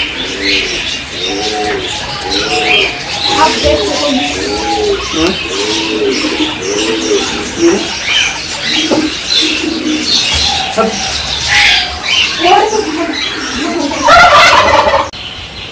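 Guinea pigs squeak and chirp in quick repeated calls close by.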